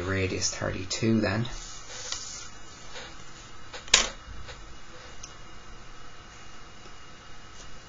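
A metal drawing compass clicks as it is adjusted.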